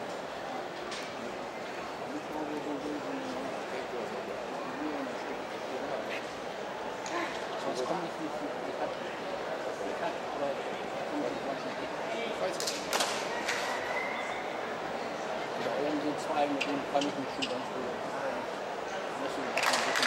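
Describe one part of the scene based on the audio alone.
A crowd murmurs steadily outdoors.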